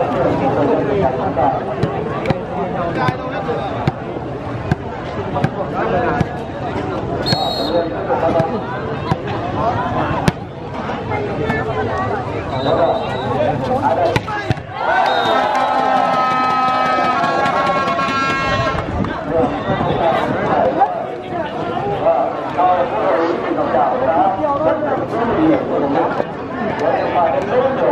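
A large outdoor crowd chatters and cheers loudly.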